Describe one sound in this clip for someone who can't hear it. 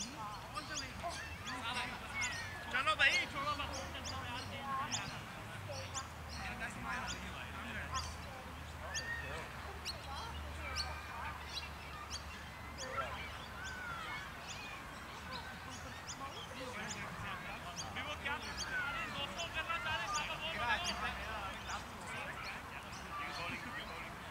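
Men talk and call out to each other at a distance outdoors.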